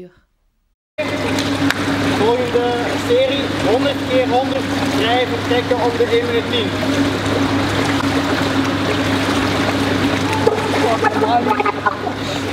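Water laps and sloshes in an echoing pool hall.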